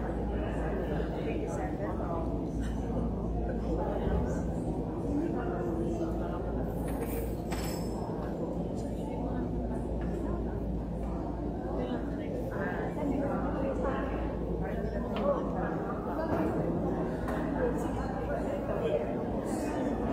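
Several adults, men and women, chat softly close by in a large echoing hall.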